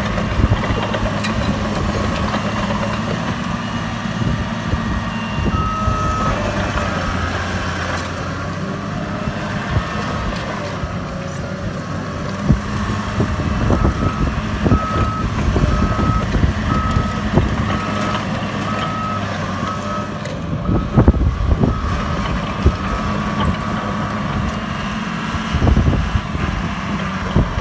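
Steel tracks clank and squeak over dirt.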